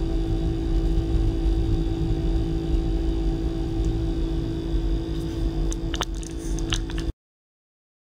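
Electronic equipment hums steadily.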